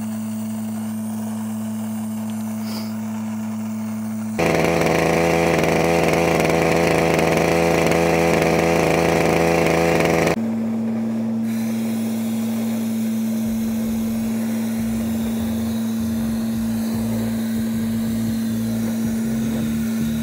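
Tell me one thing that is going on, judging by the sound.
A vacuum pump engine hums steadily.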